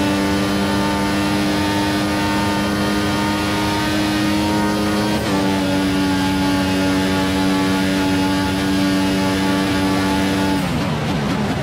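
A racing car engine screams at high revs, shifting up a gear.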